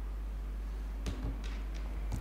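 A glass is set down on a table with a light knock.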